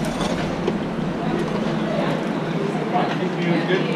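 Metal tongs clink against a metal tray.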